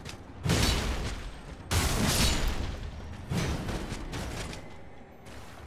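A heavy blade whooshes through the air with a rushing swoosh.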